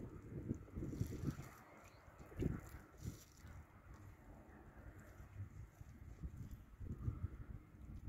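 Water trickles from a watering can onto soil.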